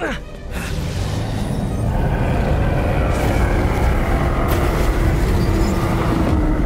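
Heavy rubble crashes and rumbles.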